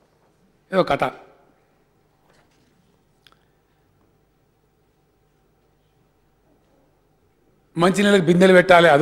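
A man speaks formally into a microphone.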